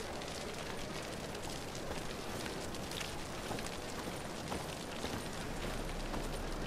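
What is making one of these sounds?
Footsteps thud quickly on a stone street.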